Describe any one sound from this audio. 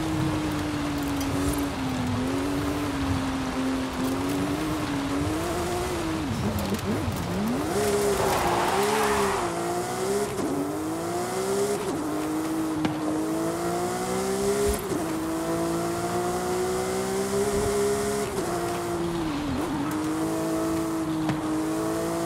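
A sports car engine roars and revs up and down through gear changes.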